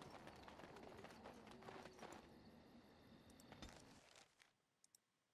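A young woman talks quietly into a microphone.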